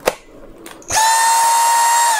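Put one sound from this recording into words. A vacuum cleaner motor starts and whirs steadily.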